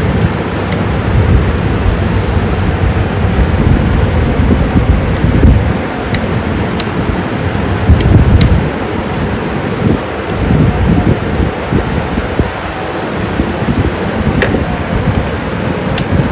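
A plastic fan body clicks and taps as hands handle it.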